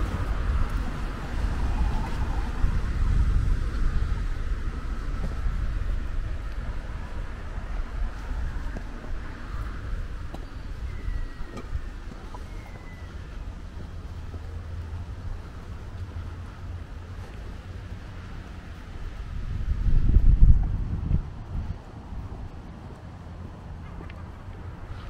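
Wind gusts outdoors, rumbling low.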